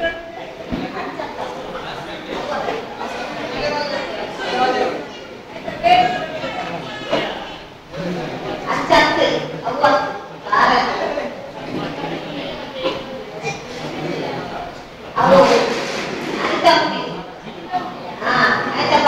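A middle-aged woman speaks calmly into a microphone, heard through a loudspeaker in an echoing hall.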